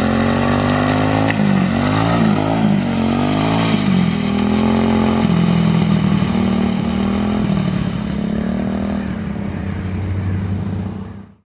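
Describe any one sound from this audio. A small engine revs and drones, slowly fading.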